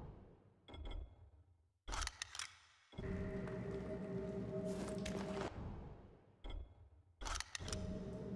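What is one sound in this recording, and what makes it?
A soft click sounds as a menu option is chosen.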